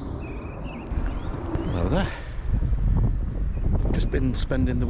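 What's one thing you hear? An older man talks calmly close by.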